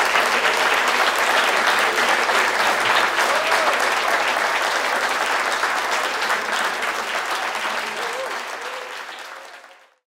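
A large audience applauds and cheers, fading away at the end.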